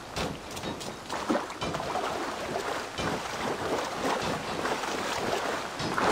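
Water splashes steadily.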